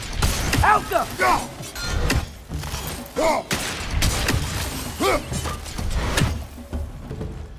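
A heavy axe swings and strikes with loud thuds.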